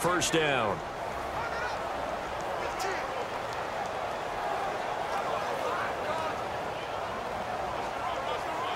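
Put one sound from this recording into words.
A large stadium crowd murmurs and cheers steadily.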